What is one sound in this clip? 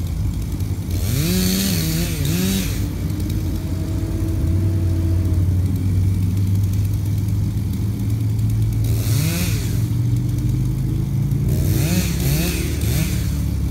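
A chainsaw revs in bursts in the distance.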